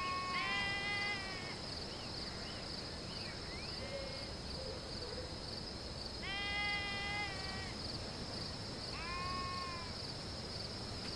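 Sheep bleat nearby.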